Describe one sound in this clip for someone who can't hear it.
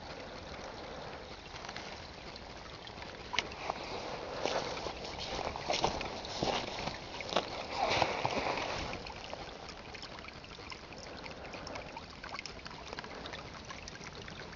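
A shallow stream of water trickles steadily outdoors.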